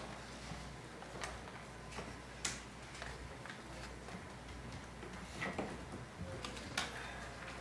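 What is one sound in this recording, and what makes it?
Papers rustle on a desk.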